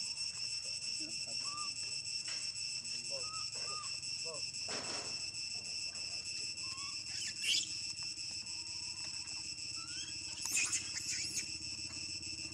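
A baby monkey squeals and cries.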